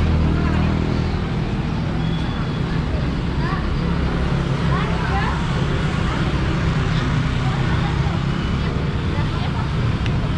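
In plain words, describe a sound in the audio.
Women talk quietly nearby.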